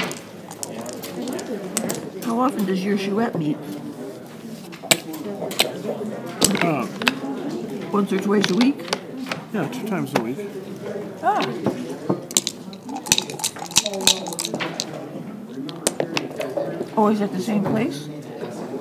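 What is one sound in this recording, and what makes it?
Dice rattle and tumble onto a board.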